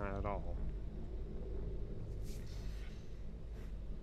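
An energy ball bursts with a sharp crackle.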